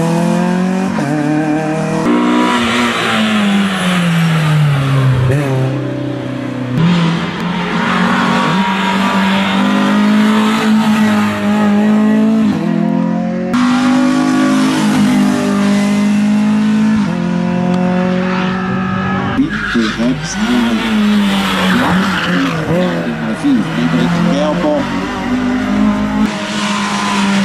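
A four-cylinder race hatchback accelerates hard uphill.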